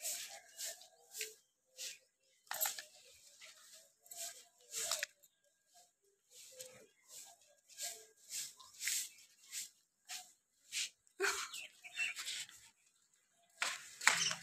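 Bedding rustles as it is carried.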